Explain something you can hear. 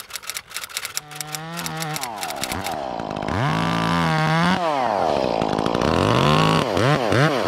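A chainsaw engine revs up and down close by.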